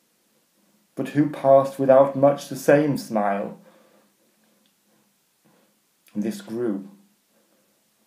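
A middle-aged man speaks close to a microphone with animation, in short bursts.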